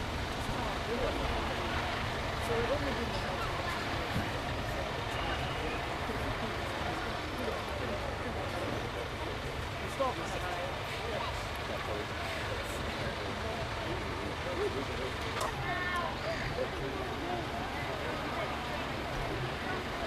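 People murmur and chat nearby outdoors.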